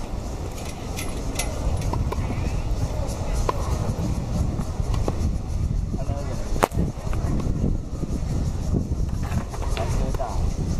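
Tennis balls thwack sharply off rackets outdoors.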